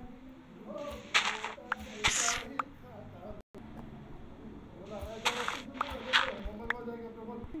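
A game block breaks with a short crumbling crunch.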